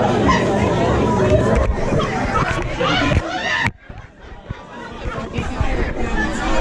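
A crowd chatters and cheers loudly nearby.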